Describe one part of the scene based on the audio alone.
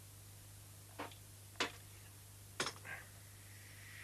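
A wrench clanks against a metal pipe.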